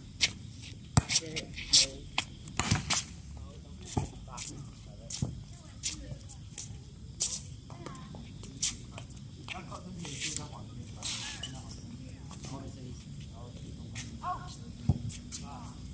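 A ball thumps off a player's arms outdoors.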